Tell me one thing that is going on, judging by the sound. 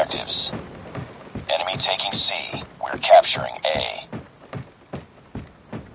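Footsteps thud quickly across a wooden deck.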